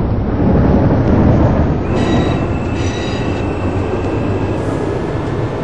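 A tram rumbles steadily along the rails.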